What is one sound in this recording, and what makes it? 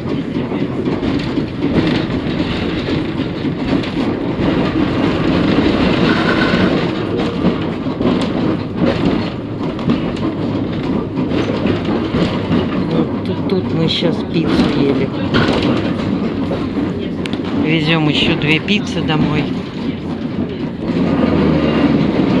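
A tram rumbles and rattles steadily along the tracks.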